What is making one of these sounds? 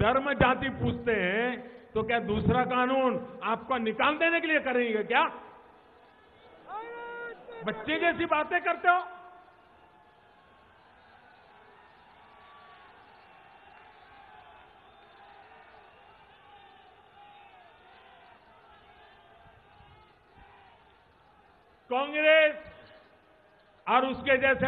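An elderly man gives a speech forcefully into a microphone, heard through loudspeakers.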